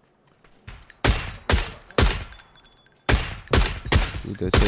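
Rifle shots crack several times in quick succession.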